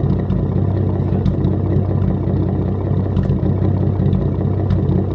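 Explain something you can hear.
A car engine idles close by with a steady, low, throbbing rumble.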